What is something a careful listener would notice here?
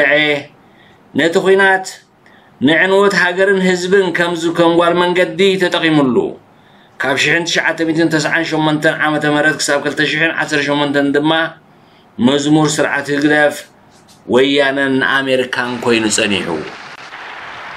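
A middle-aged man speaks forcefully into a microphone, heard through loudspeakers.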